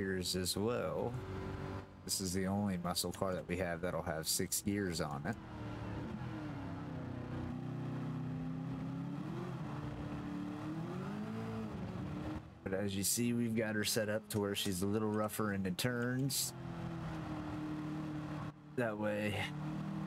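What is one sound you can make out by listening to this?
A racing car engine roars, revving up and down sharply as gears change.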